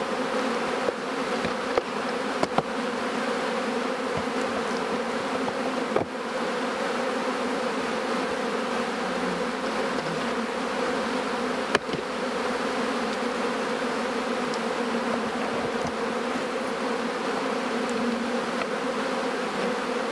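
A dense swarm of bees buzzes steadily close by.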